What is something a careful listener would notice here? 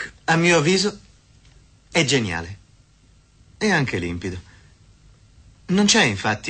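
A man speaks in short, earnest phrases close by, with pauses between them.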